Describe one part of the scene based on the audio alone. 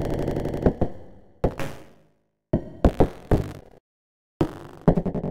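Sharp electronic clicks and bursts of noise sound in irregular clusters, each ringing briefly and fading away.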